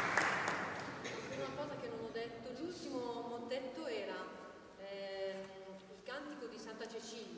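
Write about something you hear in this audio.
A man speaks calmly to an audience, his voice echoing in a large hall.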